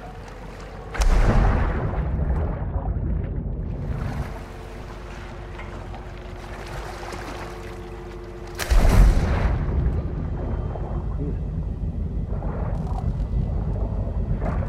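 Water splashes and gurgles as a swimmer dives under.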